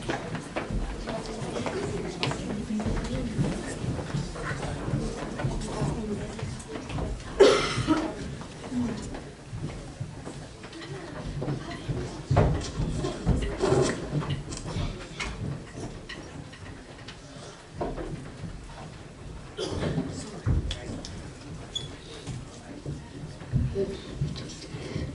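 An audience murmurs and chatters.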